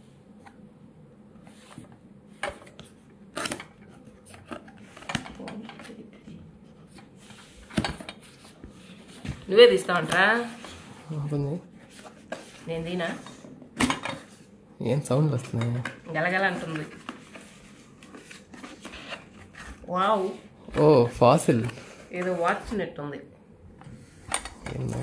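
Cardboard rustles and taps as a box is handled and opened.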